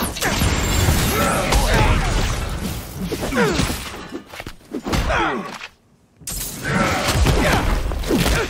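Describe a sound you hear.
Heavy blows and thuds land in a fast fight.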